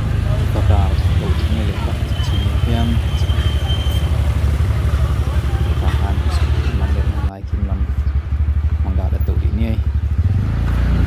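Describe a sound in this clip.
Men and women talk nearby in short, casual exchanges.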